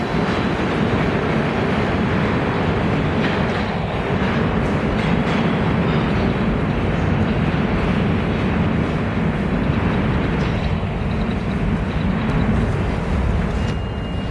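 A second subway train rumbles closer as it approaches the station.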